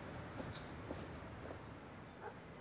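Footsteps click on pavement.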